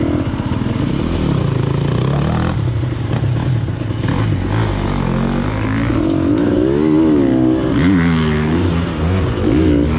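A second dirt bike engine roars nearby.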